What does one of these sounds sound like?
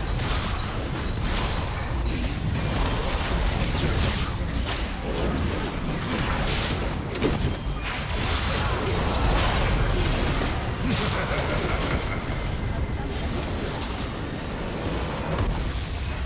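Game spell effects crackle and clash in a fast fight.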